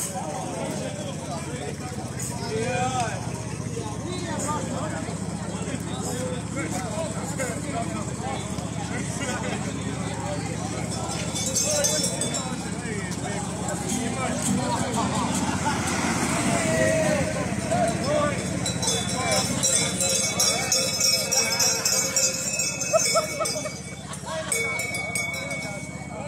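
A band of folk musicians plays a lively tune outdoors.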